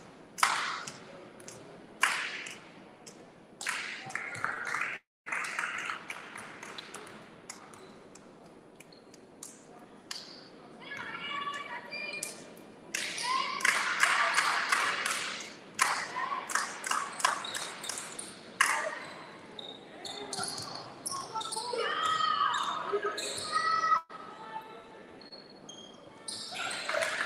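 Spectators and players shout and cheer in an echoing gym.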